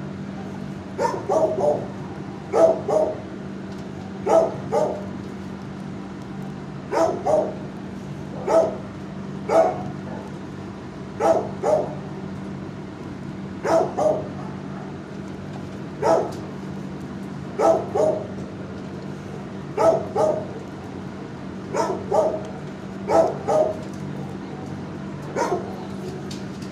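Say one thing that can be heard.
A dog barks in short, repeated bursts close by.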